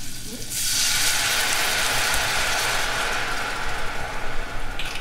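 Something sizzles in a hot pan.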